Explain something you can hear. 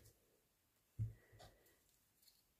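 A small ink pad taps on a table.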